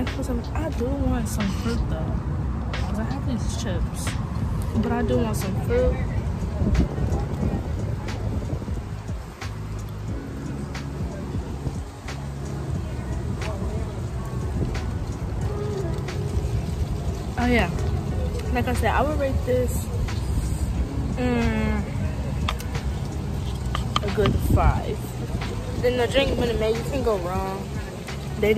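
A young woman talks casually and close to a microphone.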